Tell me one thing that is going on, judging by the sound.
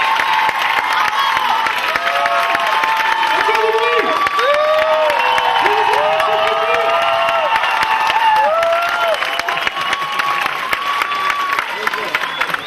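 Young children shout and cheer excitedly.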